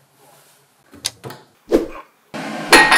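China cups clink together.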